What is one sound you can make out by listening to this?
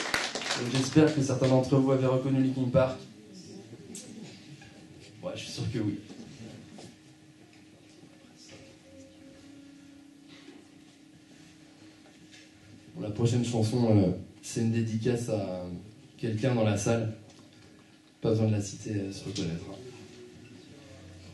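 A man speaks into a microphone through loudspeakers in a hall.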